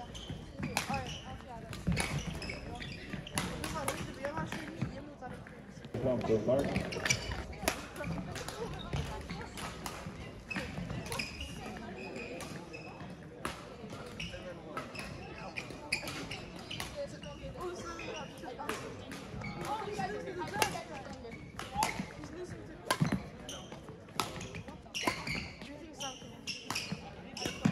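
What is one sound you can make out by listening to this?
Voices of a crowd of people chatter nearby.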